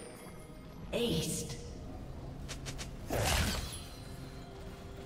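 Game spell effects burst and crackle in a fight.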